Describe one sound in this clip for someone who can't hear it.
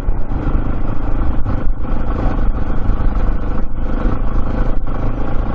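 Tyres roll and crunch over a bumpy dirt track.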